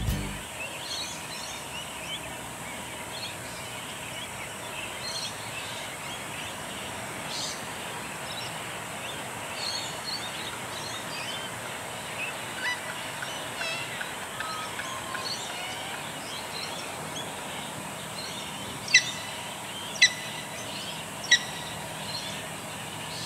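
Birds chirp and call outdoors.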